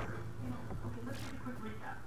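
Electric bolts crackle and zap.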